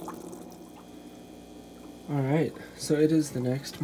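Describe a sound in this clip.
Air bubbles stream and fizz softly in an aquarium.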